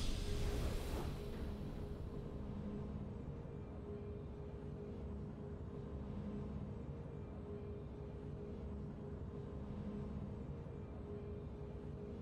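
Soft game music plays on steadily.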